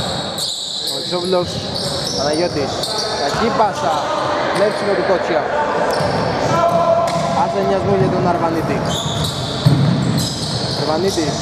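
Players call out to each other across an echoing hall.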